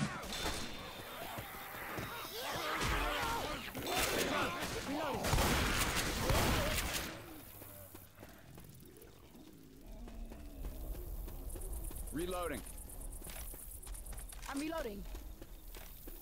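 Zombies snarl and shriek.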